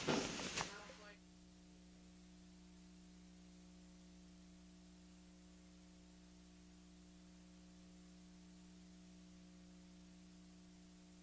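A low steady electrical hum drones.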